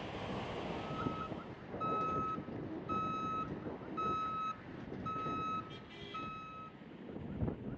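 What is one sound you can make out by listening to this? A reversing alarm beeps in a steady, repeating rhythm.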